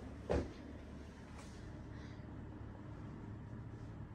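A child breathes softly while asleep nearby.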